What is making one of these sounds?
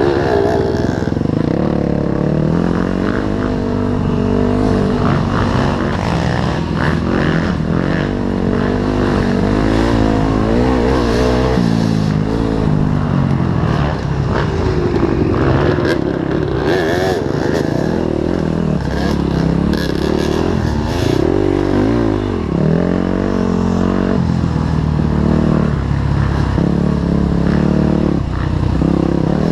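Tyres crunch over leaves and dirt.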